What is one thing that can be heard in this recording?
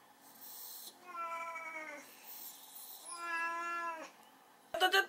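A dog whines in long, high, pleading tones.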